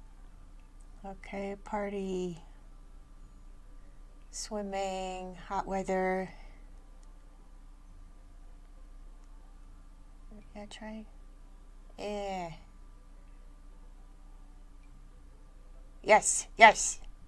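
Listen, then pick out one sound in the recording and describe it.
A person speaks in a high, playful voice close to a microphone, in short bursts.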